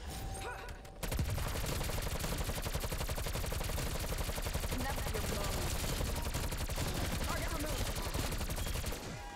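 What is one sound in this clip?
Rapid gunfire rattles loudly from a video game.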